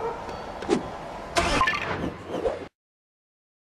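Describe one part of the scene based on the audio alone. A video game chime rings out.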